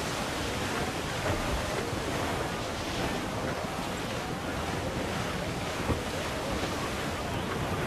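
Waves crash against a ship's bow.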